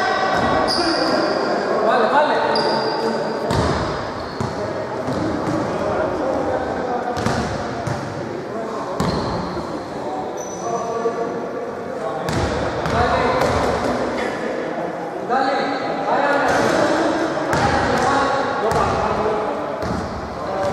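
A crowd chatters and shouts in a large echoing gym.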